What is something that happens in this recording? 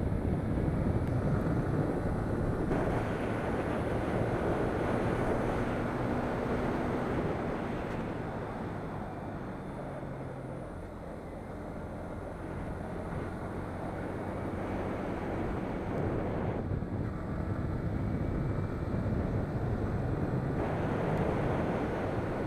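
A sport motorcycle engine hums at cruising speed.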